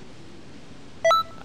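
A bright electronic chime rings out once.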